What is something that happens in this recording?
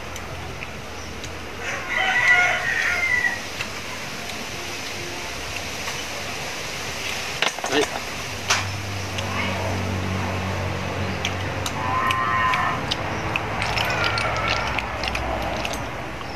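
Snail shells click and clatter against each other.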